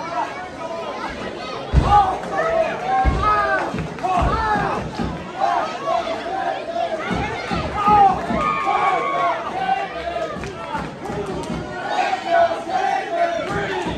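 A large crowd cheers and chants loudly in an echoing hall.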